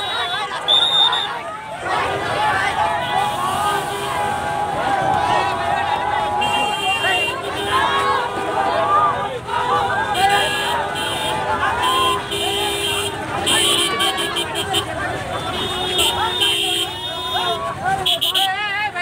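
A large crowd of young men shouts and cheers excitedly close by.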